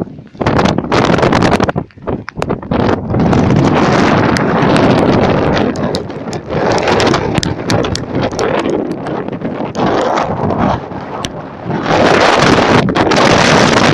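Strong wind roars and buffets against the microphone outdoors, rising and falling in gusts.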